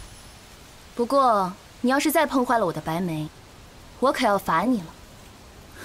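A young woman speaks gently.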